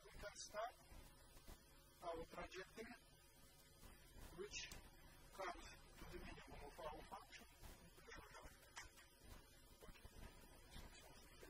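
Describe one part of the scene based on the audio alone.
An elderly man lectures calmly in an echoing room, heard through a microphone.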